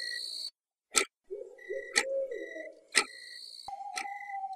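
A wall clock ticks steadily.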